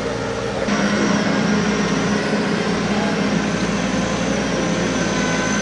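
A farm machine's engine runs loudly and steadily.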